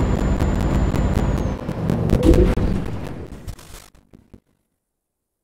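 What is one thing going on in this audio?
A truck engine rumbles low and steadily, then cuts out.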